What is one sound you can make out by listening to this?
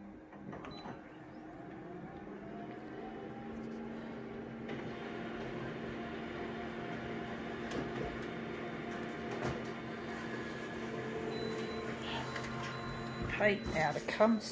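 A copy machine hums and whirs steadily as it prints.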